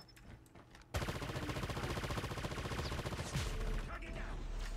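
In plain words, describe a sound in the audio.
A machine gun fires in a rapid burst.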